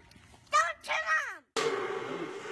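A young child squeals up close.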